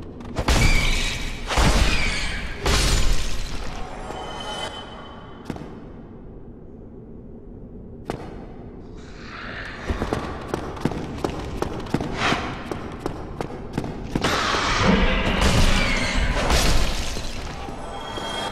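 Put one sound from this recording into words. Weapon blows strike a creature with heavy thuds.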